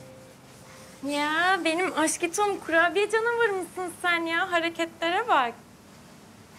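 A young woman speaks playfully and with animation in a high, sing-song voice nearby.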